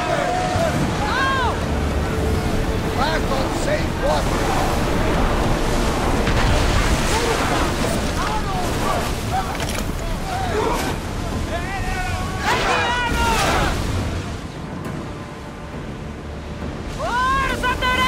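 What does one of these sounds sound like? Waves rush and splash against a wooden ship's hull.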